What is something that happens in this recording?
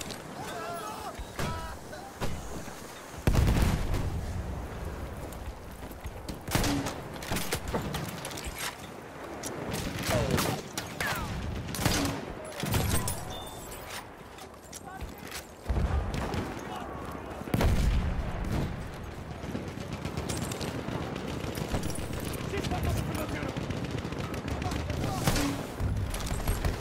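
Rifle shots crack sharply, again and again.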